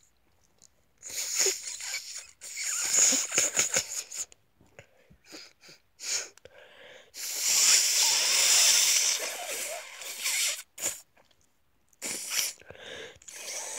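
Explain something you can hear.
A young man breathes and gasps loudly close to the microphone.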